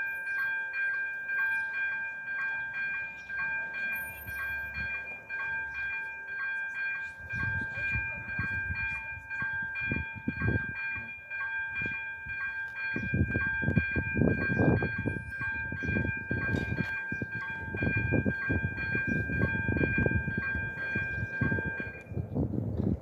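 A level crossing bell rings in rapid, steady pulses, then stops.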